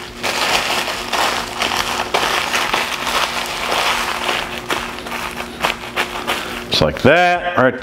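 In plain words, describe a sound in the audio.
Aluminium foil crinkles and rustles as it is folded by hand.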